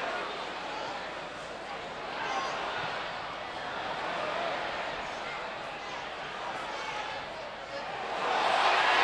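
A stadium crowd murmurs in the background.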